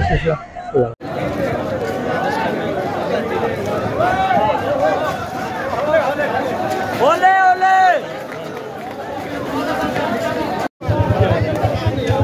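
A crowd murmurs and calls out outdoors.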